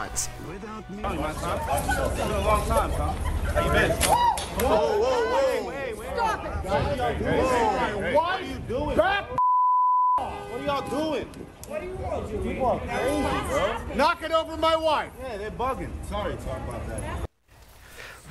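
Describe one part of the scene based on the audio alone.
A crowd of people talk and shout excitedly close by.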